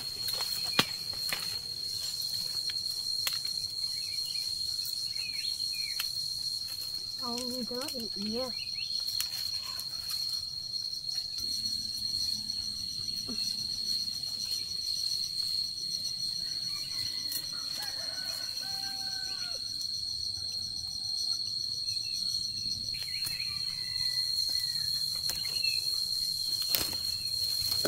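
Leaves and branches rustle close by.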